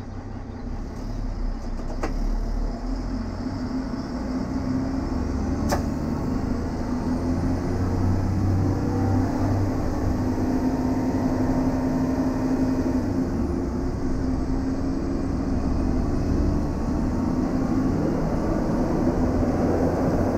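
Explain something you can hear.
Train wheels rumble on rails.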